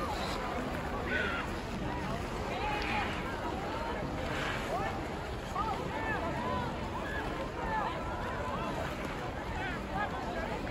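A crowd of people chatters and calls out across a wide outdoor space.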